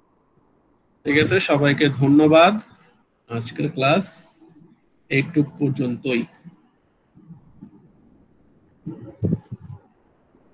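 A young man speaks calmly into a microphone, heard as if through an online call.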